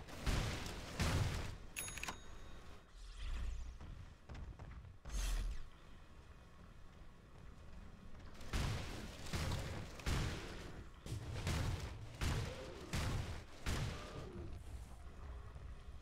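Weapons clash and strike in bursts.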